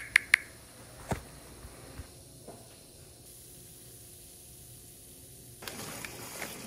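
Bubbles fizz and crackle softly in a glass of water.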